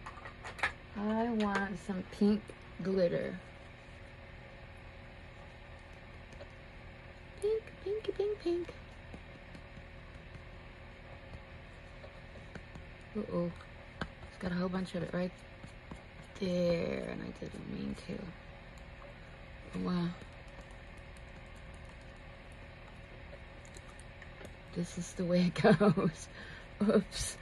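A middle-aged woman speaks calmly and close to a microphone, in short bursts with pauses.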